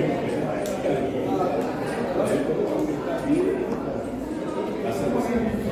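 Playing cards slap and click onto a table.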